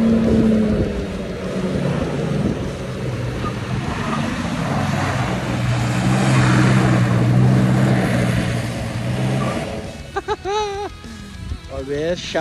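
Tyres spin and spray loose dirt.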